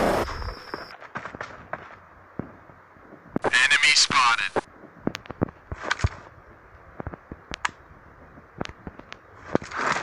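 A rifle fires single shots and short bursts.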